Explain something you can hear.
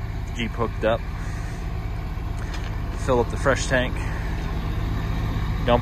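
A large truck engine idles with a steady low rumble.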